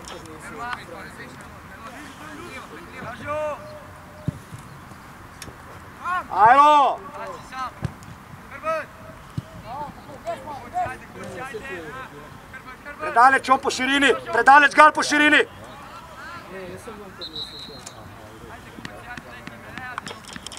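Young players shout to each other outdoors across an open field.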